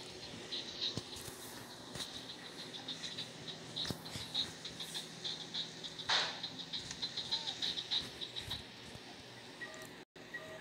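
A baby coos softly close by.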